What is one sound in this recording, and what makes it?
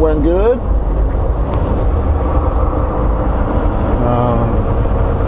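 A heavy vehicle's engine rumbles steadily as it drives along a road.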